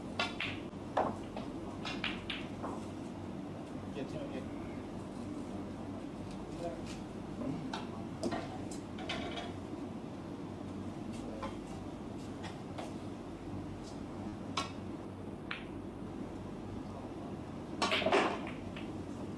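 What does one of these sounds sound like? Snooker balls clack together.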